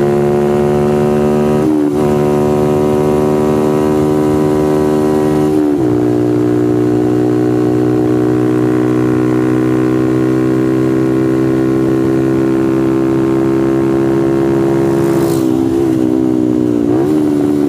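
Wind roars past close by.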